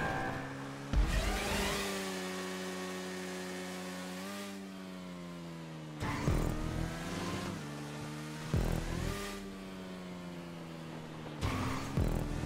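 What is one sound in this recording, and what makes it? A motorcycle's tyres thud as it lands after a jump.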